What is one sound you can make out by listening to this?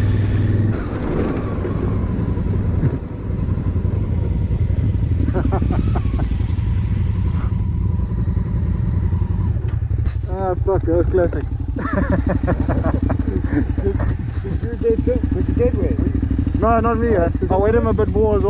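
A motorcycle engine idles and rumbles steadily.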